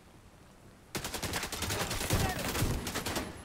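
A rifle fires in rapid bursts close by.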